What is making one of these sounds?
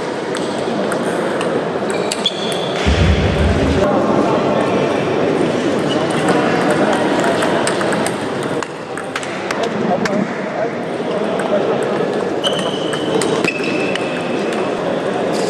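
Sneakers squeak on the floor.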